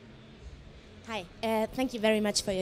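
A man speaks into a microphone in a large hall, heard through loudspeakers.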